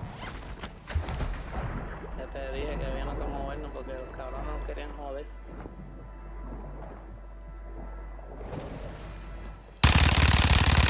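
Water bubbles and gurgles in a muffled, underwater way.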